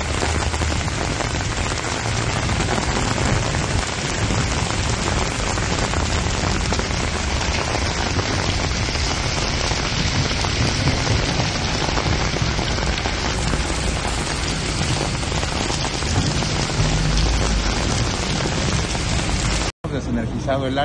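Heavy rain and wind roar steadily outdoors.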